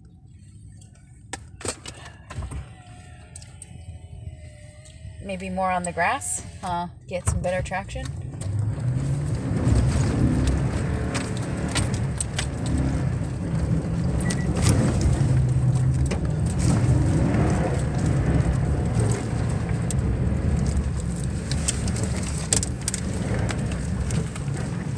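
Hail patters and clicks on a car's windshield and roof.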